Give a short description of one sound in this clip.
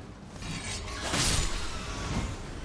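A magic blast whooshes and crackles loudly.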